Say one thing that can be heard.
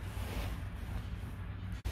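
Loose soil patters softly into small pots.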